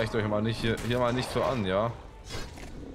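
A large creature growls and roars.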